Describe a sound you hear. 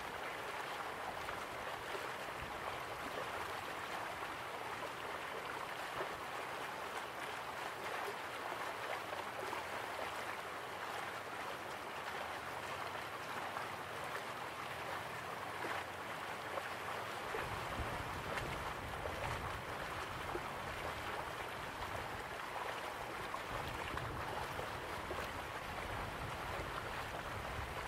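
A waterfall splashes steadily into a pool.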